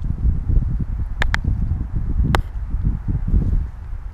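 A small fish splashes into the water.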